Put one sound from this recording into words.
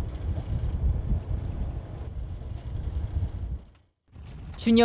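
Wind rumbles over open water.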